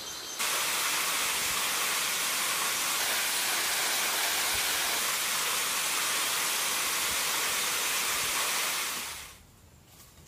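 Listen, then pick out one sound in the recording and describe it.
A waterfall roars steadily close by, then suddenly falls quiet.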